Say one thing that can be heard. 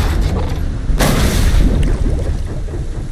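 A heavy metal object splashes into water.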